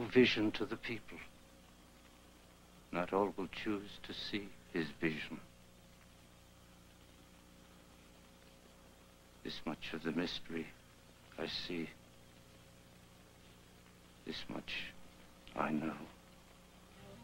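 A middle-aged man speaks slowly and solemnly, close by, with long pauses.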